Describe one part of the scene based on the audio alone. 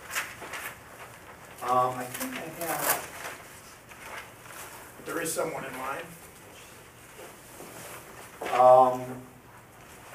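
Papers rustle as pages are turned.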